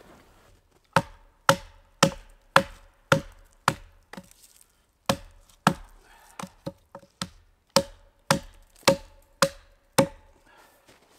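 An axe chops wood with sharp, regular knocks a short way off.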